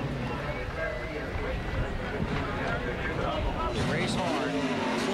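A race car engine rumbles steadily close by.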